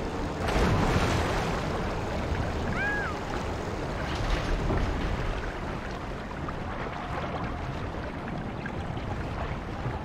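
Water swishes and laps as someone swims steadily.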